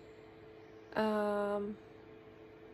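A woman makes a short, drawn-out sound with her voice, close by.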